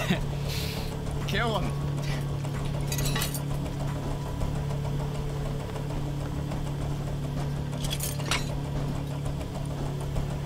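A recycling machine hums and grinds steadily.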